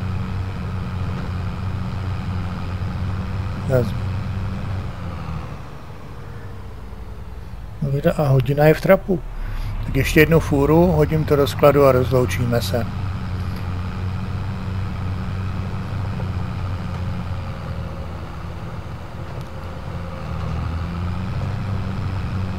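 A tractor engine hums steadily at low pitch.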